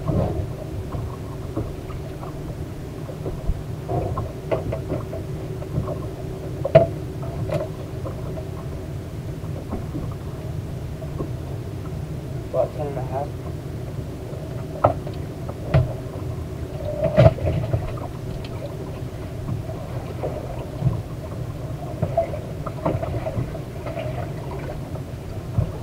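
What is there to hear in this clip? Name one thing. Wind blows across the water.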